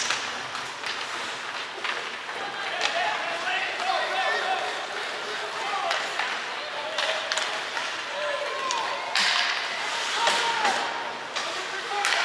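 Hockey sticks slap pucks with sharp clacks.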